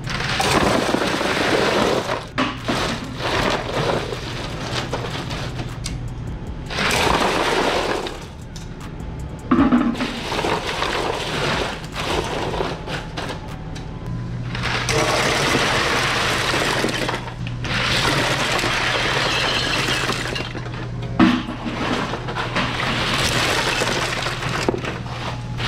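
Ice cubes clatter and rustle as they are scooped and poured.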